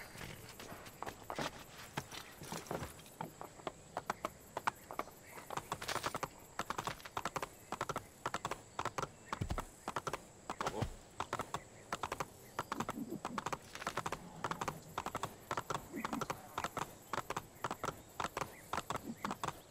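A horse's hooves gallop steadily over hard ground.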